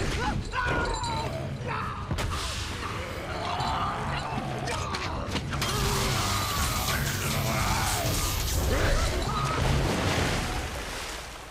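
A huge creature roars and growls deeply.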